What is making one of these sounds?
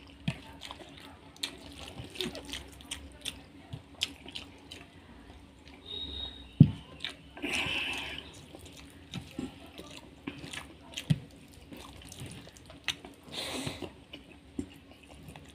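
A man chews food with wet, smacking sounds close to the microphone.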